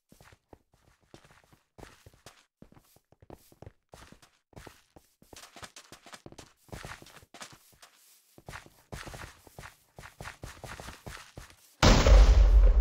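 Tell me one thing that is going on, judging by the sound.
Footsteps rustle through grass and gravel.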